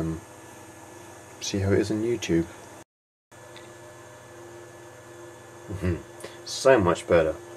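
A desktop computer hums steadily.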